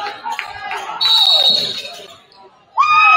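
A referee blows a whistle.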